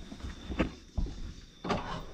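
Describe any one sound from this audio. A metal door handle rattles and clicks.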